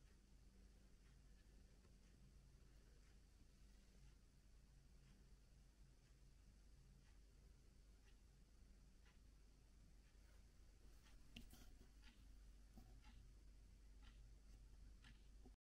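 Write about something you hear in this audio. A heater hums softly and steadily.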